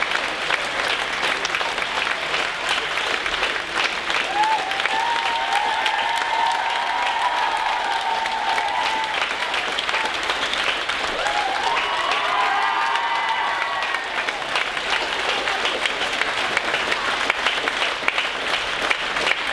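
A crowd applauds steadily in a large hall.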